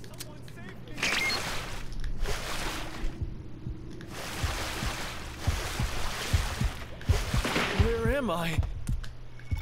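Water splashes and churns as a character swims.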